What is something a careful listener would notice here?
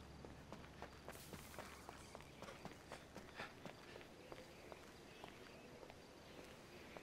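Footsteps crunch on loose gravel and dirt.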